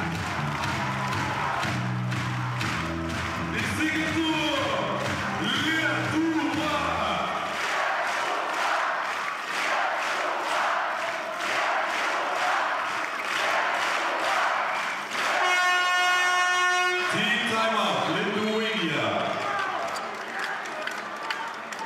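A large crowd cheers and chants in an echoing arena.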